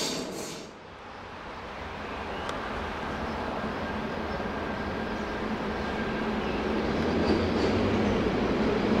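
A distant train rolls slowly along the tracks.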